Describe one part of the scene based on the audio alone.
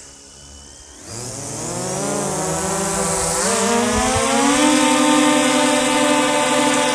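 A drone's motors spin up and whine loudly as it lifts off and hovers.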